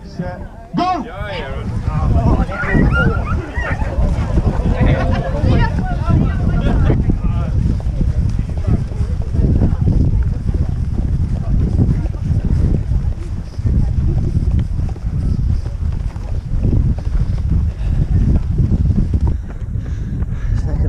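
Wind rumbles loudly against a microphone.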